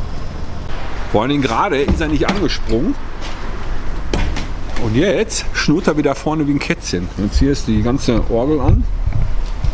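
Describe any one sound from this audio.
A middle-aged man talks calmly and clearly, close to the microphone.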